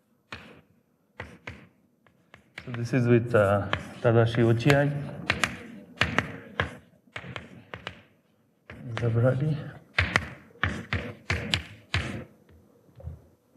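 Chalk taps and scratches on a blackboard in short bursts.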